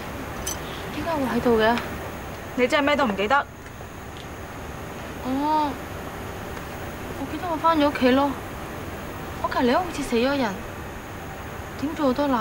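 A young woman speaks quietly and anxiously close by.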